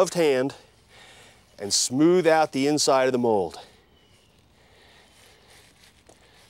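Gloved hands pat and rub loose soil.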